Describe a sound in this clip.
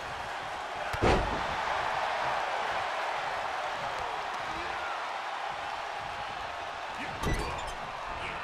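Heavy body blows thud on a wrestling mat.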